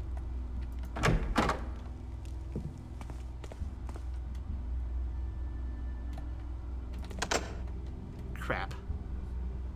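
A wooden door swings open with a creak.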